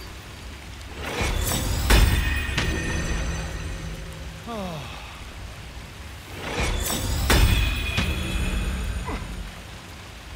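A magical spell bursts with a bright, ringing shimmer.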